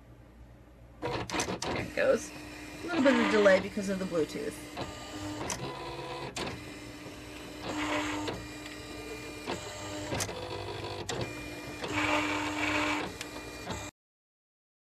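A cutting machine whirs and buzzes as its blade carriage slides back and forth.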